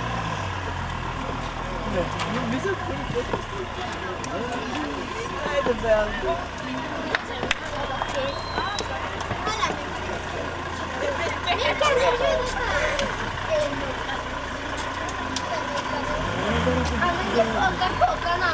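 A car engine idles and rumbles low nearby.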